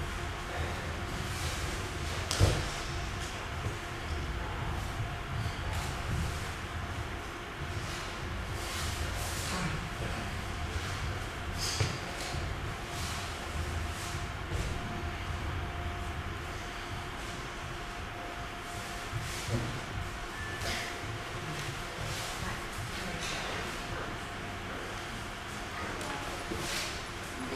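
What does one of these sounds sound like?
Two men breathe hard with effort.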